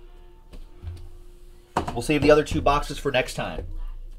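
A cardboard box slides and taps on a table.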